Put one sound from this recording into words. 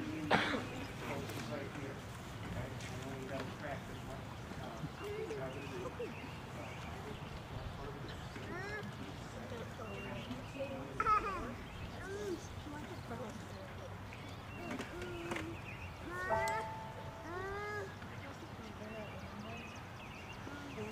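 A crowd of young people chatters quietly outdoors.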